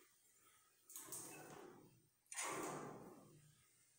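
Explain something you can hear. A metal mesh door rattles as it is handled.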